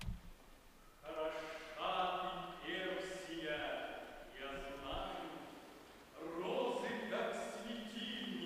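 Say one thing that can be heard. A man sings out in a full, trained voice in a large hall.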